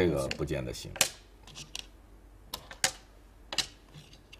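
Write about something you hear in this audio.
Game stones click sharply onto a wooden board.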